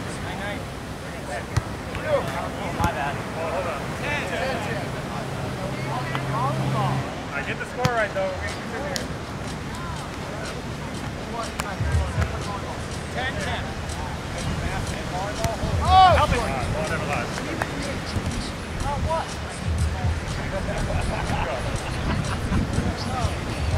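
Young men and women shout and call out to each other outdoors.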